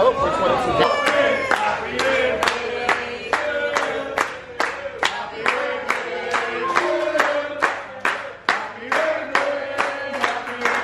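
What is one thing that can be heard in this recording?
A group of people claps in rhythm.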